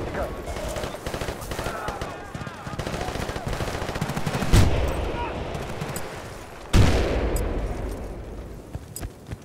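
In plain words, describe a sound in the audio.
Footsteps crunch quickly on snow and hard ground.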